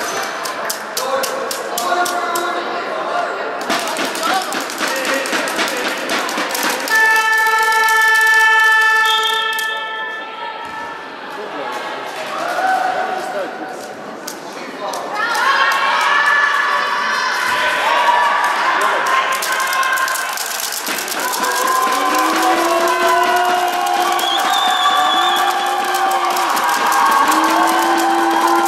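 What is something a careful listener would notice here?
Young girls chant and cheer loudly in an echoing hall.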